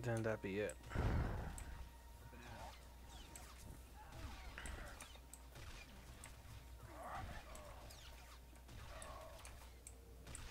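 Blasters fire and zap during a fight.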